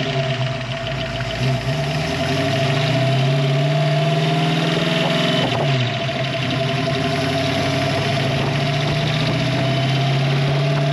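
A car engine idles with a deep, throaty rumble close by, its pitch rising and dipping slightly.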